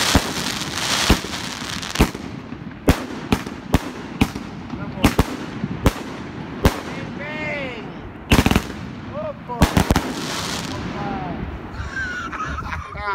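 Firework sparks crackle and fizz.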